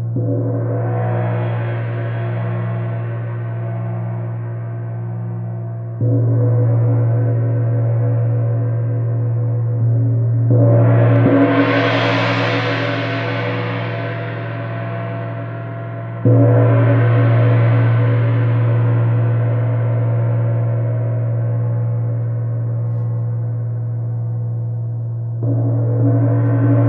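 A large gong is struck with a soft mallet and rings with a deep, shimmering hum that slowly fades.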